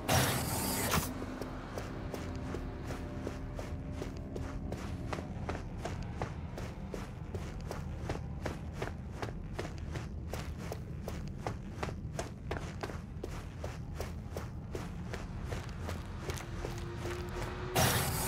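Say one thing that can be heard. Footsteps tread steadily on hard floors and stairs.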